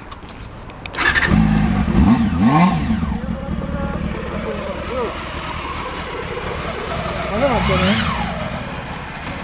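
A motorcycle engine starts and idles with a deep rumble.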